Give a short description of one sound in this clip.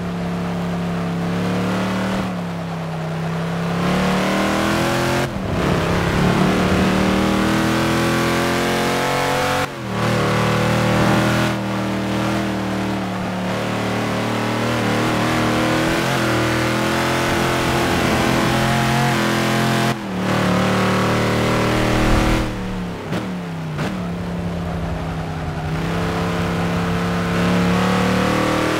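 A racing car engine roars, rising in pitch and dropping sharply with each gear change.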